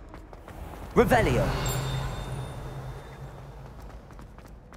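A magic spell bursts with a loud shimmering whoosh.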